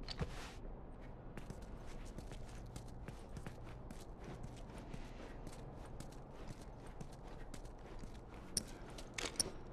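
Footsteps scuff slowly across a hard floor.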